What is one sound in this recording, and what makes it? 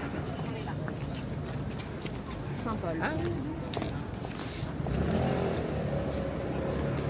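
Footsteps tap on a wet pavement.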